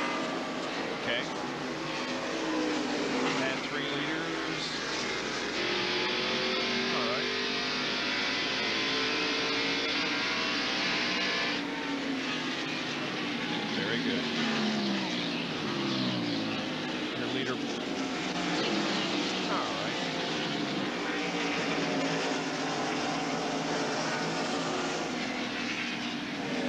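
Race car engines roar and whine as the cars speed past.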